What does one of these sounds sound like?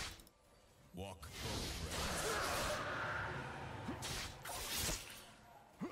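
Fighting sounds clash and whoosh in a busy burst of spell effects.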